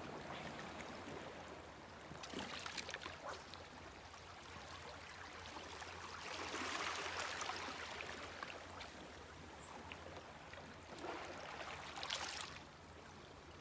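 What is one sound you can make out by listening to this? Gentle waves lap against rocks on a shore outdoors.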